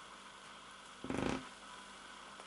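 A baby squeals briefly close by.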